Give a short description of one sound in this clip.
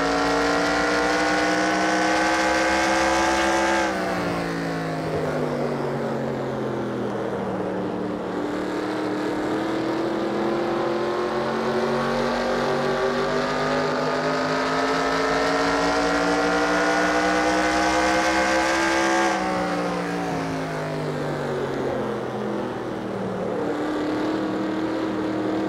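A race car engine roars loudly, its pitch dropping as the car slows into each turn and rising again as it speeds up.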